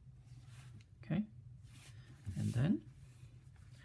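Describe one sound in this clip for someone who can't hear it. A ruler slides across paper.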